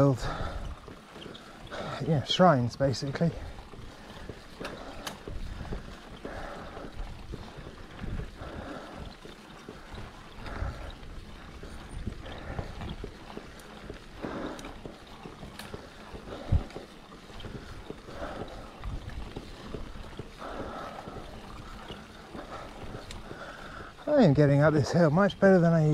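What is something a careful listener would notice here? Bicycle tyres roll and hum on a paved road.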